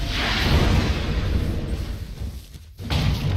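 A fiery spell explodes with a loud roaring blast.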